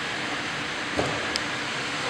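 A football thuds as it is kicked in a large echoing hall.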